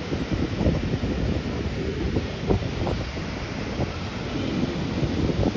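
Waves crash and roar steadily on the shore.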